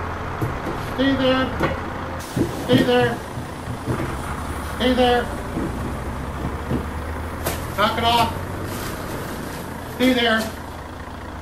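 A man speaks in short, drawn-out bursts close by.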